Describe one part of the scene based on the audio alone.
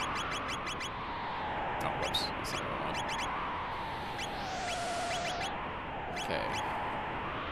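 Short electronic menu blips sound in quick runs.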